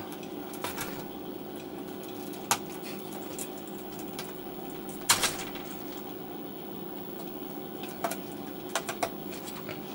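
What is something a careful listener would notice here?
Buttons click sharply a few times.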